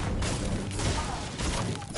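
A pickaxe strikes wood.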